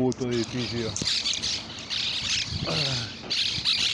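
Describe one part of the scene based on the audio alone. Pigeons flap their wings.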